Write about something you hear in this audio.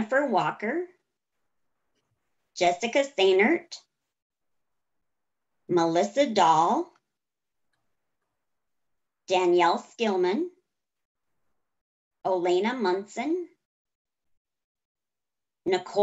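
A middle-aged woman speaks calmly in short phrases with pauses, close to a microphone.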